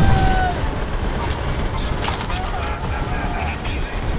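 A man shouts an order from a distance.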